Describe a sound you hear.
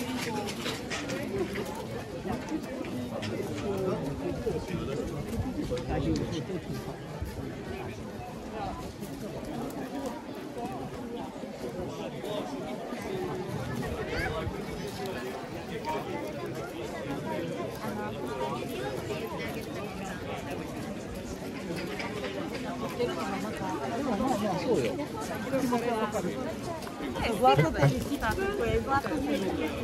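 Footsteps shuffle on gravel and paving.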